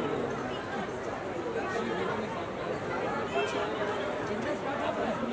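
A crowd of women chatters close by.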